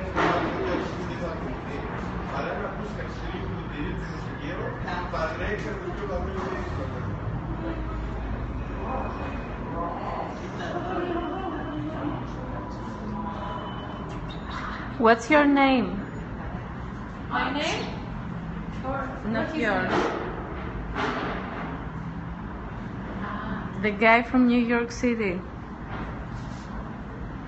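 A group of adults talk quietly nearby.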